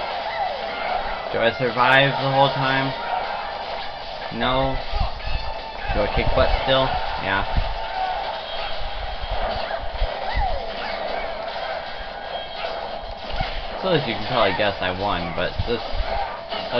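Punches and blasts from a fighting game thud and crackle in quick bursts.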